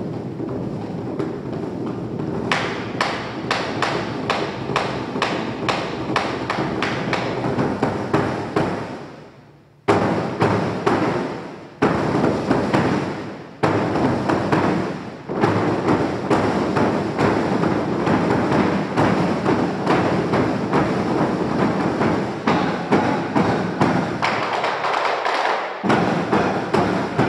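A large drum is beaten in a fast, driving rhythm.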